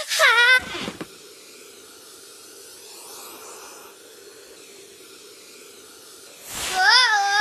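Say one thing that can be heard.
A hair dryer whirs steadily.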